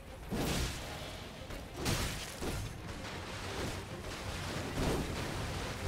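Magic blasts whoosh and roar.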